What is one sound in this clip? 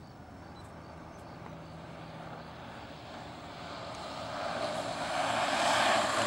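Skateboard wheels roll and rumble on asphalt, growing louder as the skateboard comes closer.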